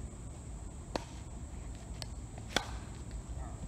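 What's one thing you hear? Paddles strike a ball with sharp pops.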